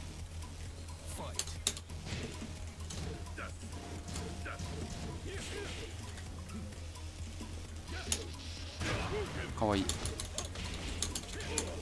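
Punches and kicks land with sharp thuds and whooshes in a fighting game.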